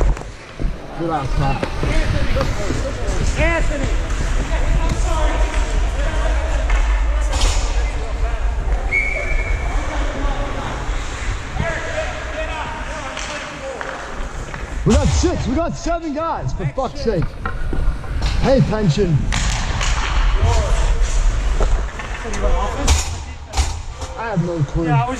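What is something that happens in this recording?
Men shout and call out across a large echoing rink.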